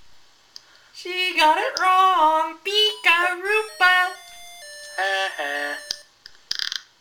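Electronic game tones chime in a short tune.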